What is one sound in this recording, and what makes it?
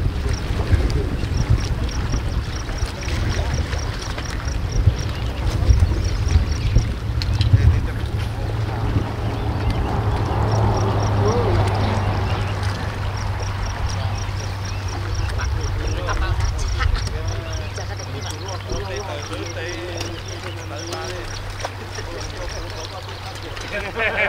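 Small waves lap against rocks on the shore.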